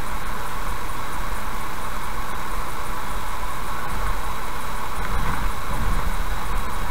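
Tyres roar steadily on a smooth road as a car drives at speed.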